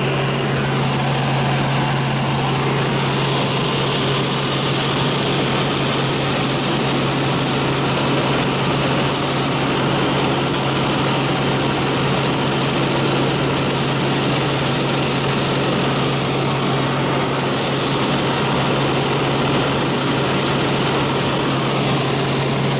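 A helicopter engine and rotor drone loudly and steadily, close by.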